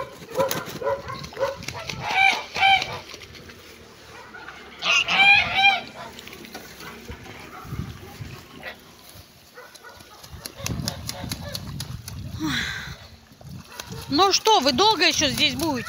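Geese splash and paddle in shallow water.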